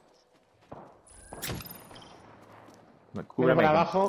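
Gunshots crack nearby in short bursts.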